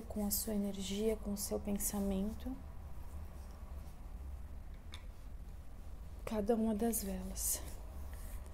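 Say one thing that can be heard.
A young woman speaks softly and closely into a microphone.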